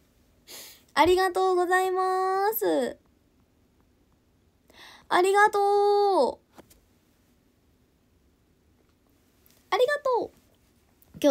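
A young woman sings long, drawn-out notes up close.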